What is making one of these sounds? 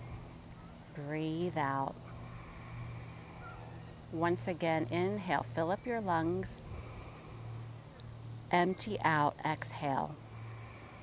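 A woman speaks calmly and slowly into a close microphone.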